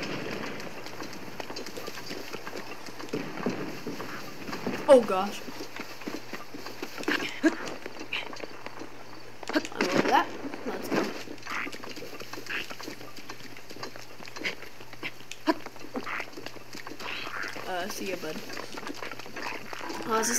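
Footsteps run across wet grass.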